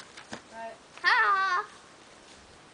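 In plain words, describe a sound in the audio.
A young child squeals in a high voice nearby.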